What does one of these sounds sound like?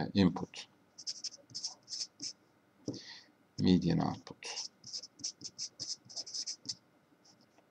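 A marker squeaks in short strokes on paper.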